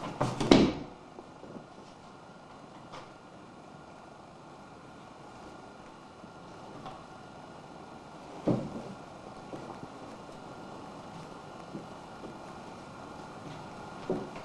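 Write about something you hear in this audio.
Two cats scuffle and thump against wooden furniture.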